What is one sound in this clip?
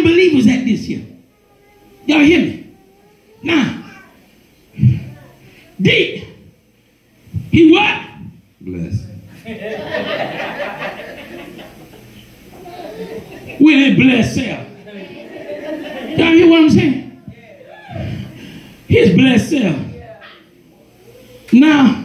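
A man speaks loudly in short bursts in a large echoing room.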